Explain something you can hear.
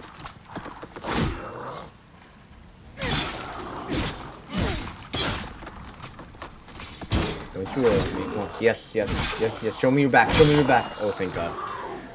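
Blades slash and clang in a fight.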